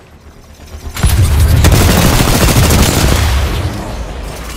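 A loud blast rumbles and roars.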